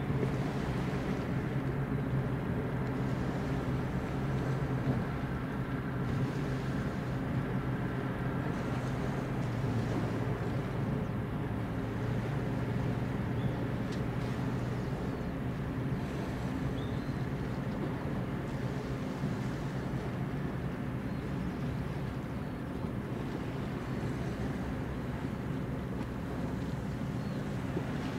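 A large ship's engines rumble low and steady as it passes close by.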